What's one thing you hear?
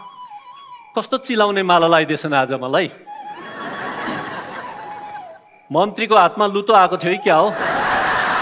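A man speaks clearly through a headset microphone, echoing in a large hall.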